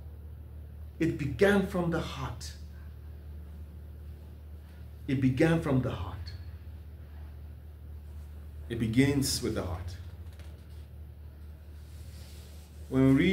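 A man reads aloud in short, deliberate phrases close by, with a slight room echo.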